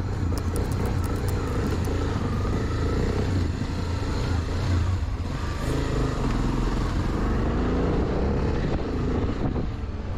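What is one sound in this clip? A motorcycle engine revs and roars close by.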